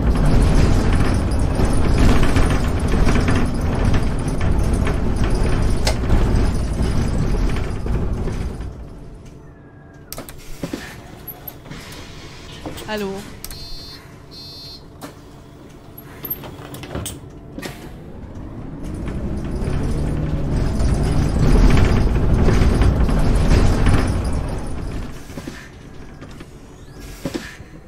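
A bus engine rumbles and roars as the bus drives, then quiets to an idle and revs up again.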